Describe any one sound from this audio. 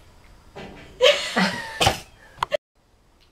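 A boy laughs.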